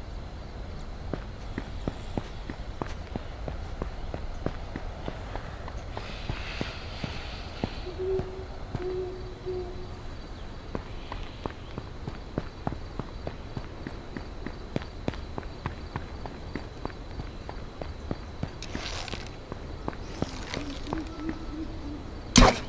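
Footsteps patter steadily on pavement.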